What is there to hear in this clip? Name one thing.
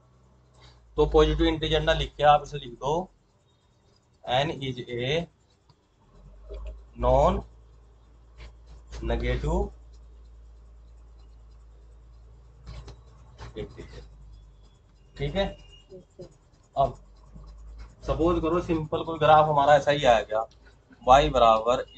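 A man speaks calmly, explaining as he lectures close by.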